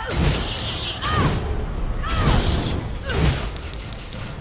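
Heavy weapon blows land with dull thuds.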